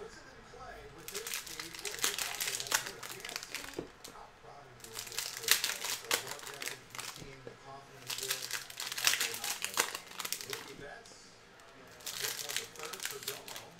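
Foil card packs crinkle and rip open in quick bursts.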